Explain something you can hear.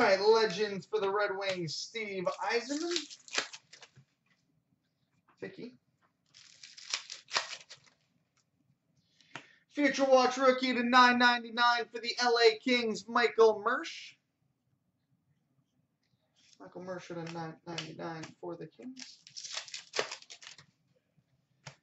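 Hands shuffle and flick through trading cards with a light rustle.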